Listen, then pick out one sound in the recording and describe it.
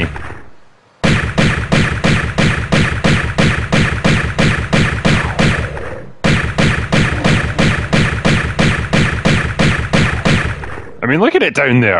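Pistols fire in a fast, steady stream of shots.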